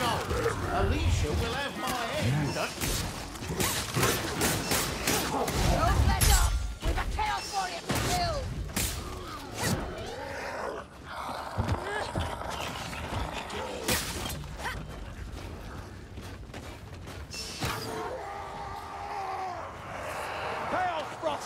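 Creatures snarl and shriek.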